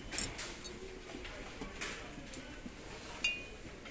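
A ceramic ornament clinks softly against a shelf.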